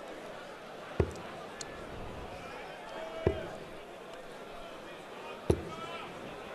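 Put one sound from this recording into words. Darts thud into a dartboard one after another.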